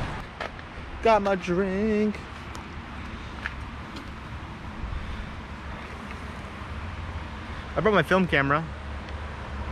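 A teenage boy speaks close to the microphone.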